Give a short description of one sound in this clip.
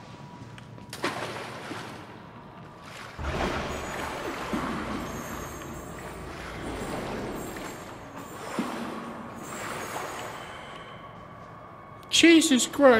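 Footsteps splash through shallow water in an echoing tunnel.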